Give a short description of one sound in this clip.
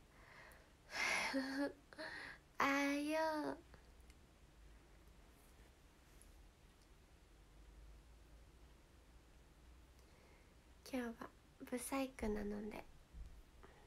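A young woman speaks brightly and playfully close to a microphone.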